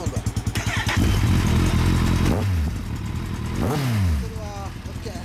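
A motorcycle engine revs up loudly and falls back.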